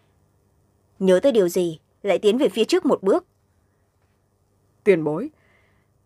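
A young woman speaks calmly and close to a microphone, reading aloud in short bursts.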